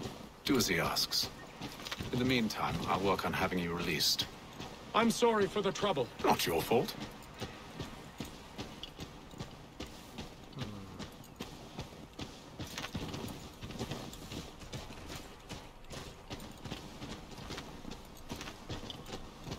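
Horse hooves thud softly on snow.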